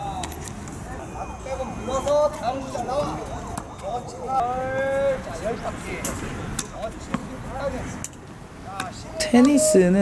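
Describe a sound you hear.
Tennis balls are struck with rackets, with sharp pops.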